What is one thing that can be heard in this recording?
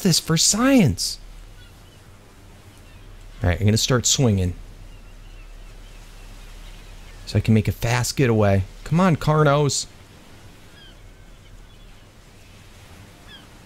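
Waves lap softly on a shore.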